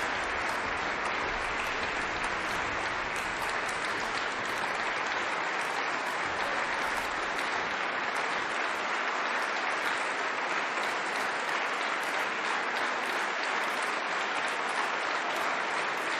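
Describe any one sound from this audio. An audience claps steadily in a large echoing hall.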